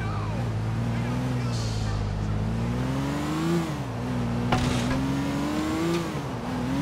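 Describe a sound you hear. A car's tyres roll over a rough road surface.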